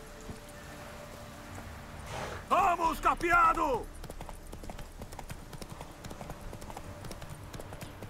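Hooves of a galloping horse thud on a dirt path.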